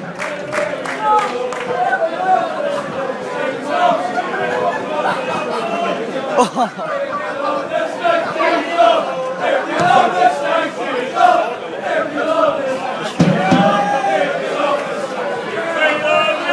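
A crowd of male football fans sings a chant in an open stadium.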